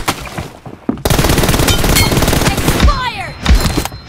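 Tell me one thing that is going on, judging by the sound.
Rapid gunfire rattles in close bursts.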